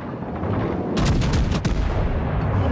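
Heavy naval guns fire in booming blasts.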